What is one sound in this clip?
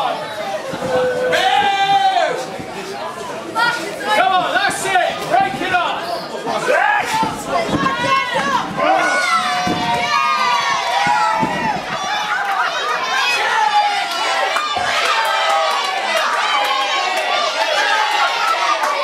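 A crowd of adults and children shouts and cheers in an echoing hall.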